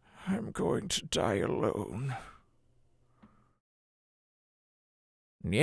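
A man speaks into a microphone with animation.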